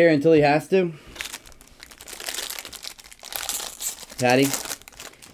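A foil card wrapper crinkles and tears.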